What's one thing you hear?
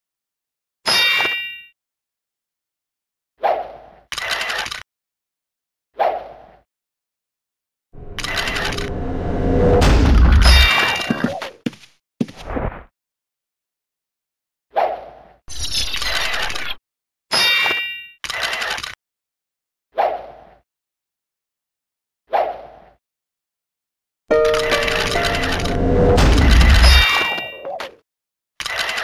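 Weapons strike and spells crackle in short bursts during a fight.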